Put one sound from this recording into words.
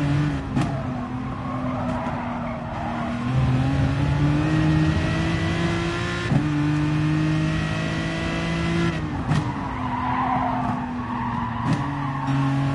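Tyres screech through the corners.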